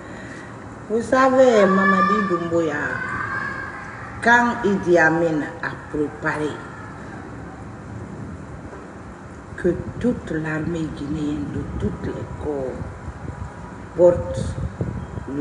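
A middle-aged woman speaks with feeling, close to the microphone.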